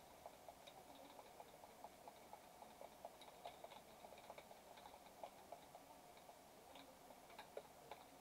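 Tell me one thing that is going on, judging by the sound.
Gunfire crackles in quick bursts.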